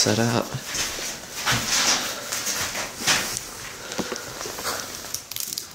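Footsteps crunch over loose debris.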